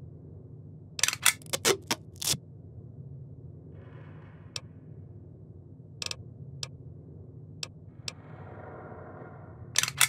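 Short interface clicks and beeps sound as a menu selection moves.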